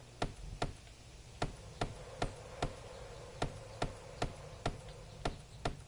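A hammer knocks on wood in sharp, regular blows.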